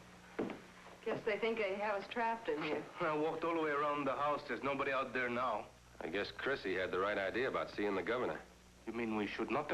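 A man speaks in a low, calm voice, close by.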